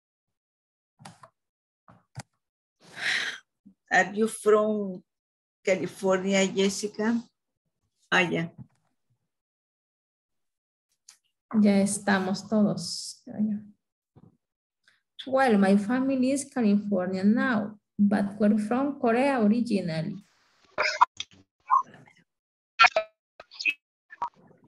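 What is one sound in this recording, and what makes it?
A woman speaks in bursts with pauses, heard through an online call.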